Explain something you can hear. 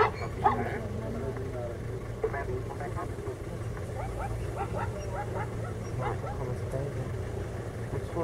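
A muddy river rushes and churns steadily.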